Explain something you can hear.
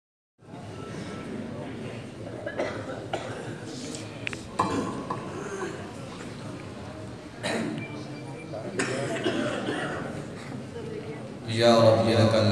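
A man speaks into a microphone over loudspeakers, echoing in a large space.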